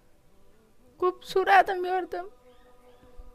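A young woman speaks tearfully into a microphone.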